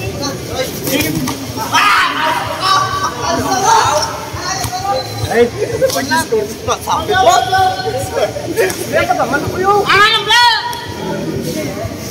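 A crowd of young men shout and cheer in an echoing open space.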